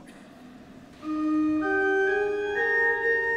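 A pipe organ plays rising chords.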